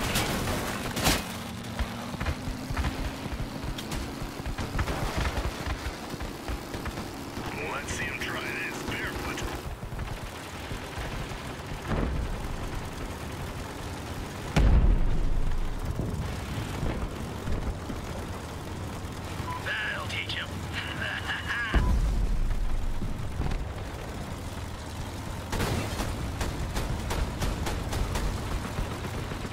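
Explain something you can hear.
A heavy vehicle engine rumbles and roars steadily.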